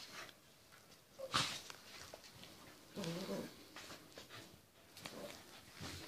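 A puppy growls playfully.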